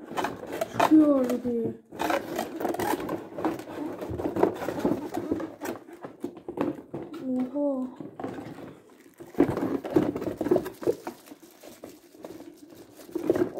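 A cardboard box rustles and knocks as hands handle it.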